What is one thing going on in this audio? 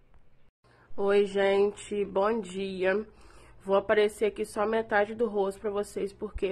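A young woman speaks with animation close to a phone microphone.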